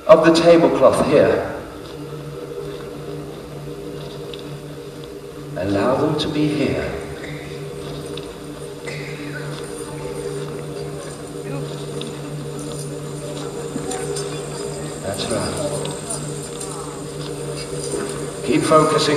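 A young woman speaks through a microphone in a large echoing hall, in short bursts.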